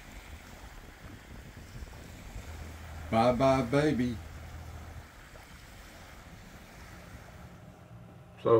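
Small waves lap gently on a shore.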